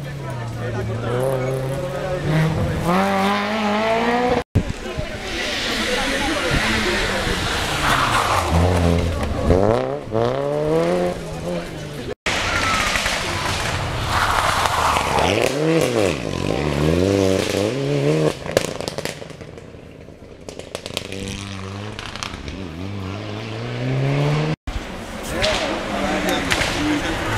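A rally car engine roars and revs hard as the car speeds past close by.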